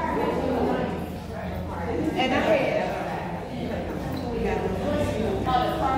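Feet shuffle and step on a hard floor in a large echoing hall.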